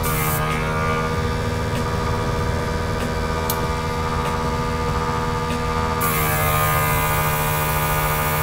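An airbrush hisses softly.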